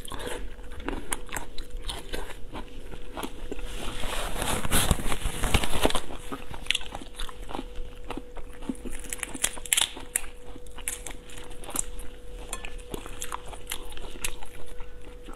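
Shells crack and crunch as hands pull seafood apart.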